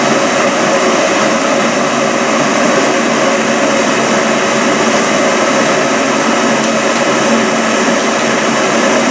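Water rumbles and bubbles steadily as it heats in an electric kettle.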